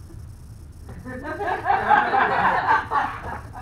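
An audience laughs loudly together.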